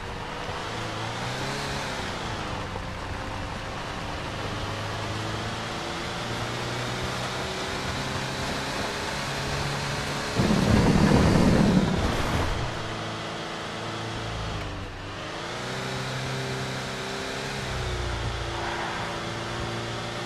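A pickup truck engine hums steadily, rising and falling in pitch.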